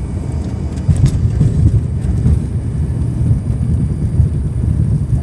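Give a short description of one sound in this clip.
A jet aircraft rumbles loudly as it rolls along the runway.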